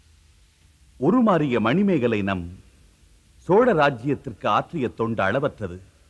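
A man speaks forcefully in a deep voice, close by.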